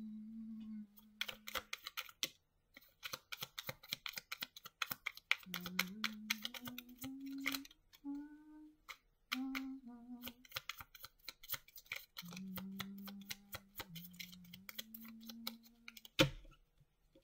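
Playing cards riffle and flick rapidly as they are shuffled by hand.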